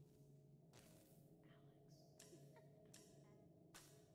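Keypad buttons beep faintly as they are pressed.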